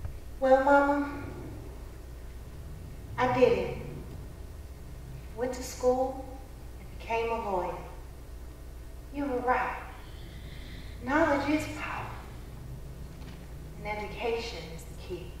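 A young woman sings slow, sorrowful phrases nearby, with pauses between them.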